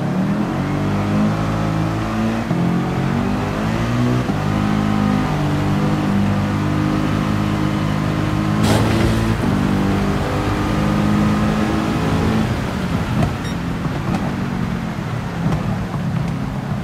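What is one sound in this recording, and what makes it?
A racing car engine roars and revs up through its gears.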